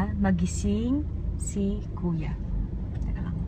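A young woman speaks nearby with animation.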